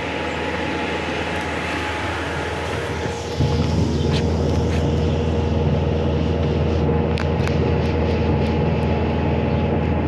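Small wheels roll and rumble steadily over rough asphalt.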